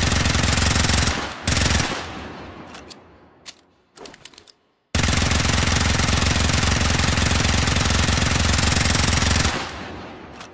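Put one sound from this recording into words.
A gun fires in rapid bursts, loud and close.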